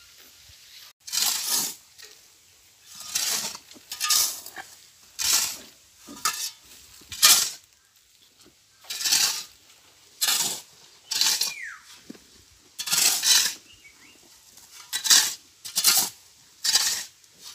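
Shovels scrape and scoop gravelly soil in repeated strokes.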